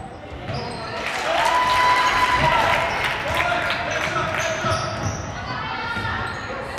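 Young people shout and cheer, echoing in a large hall.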